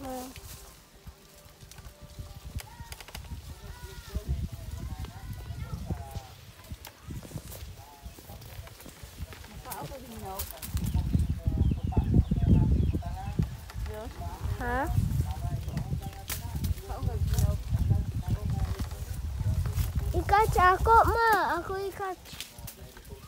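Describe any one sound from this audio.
Leaves and branches rustle and creak as someone climbs a tree.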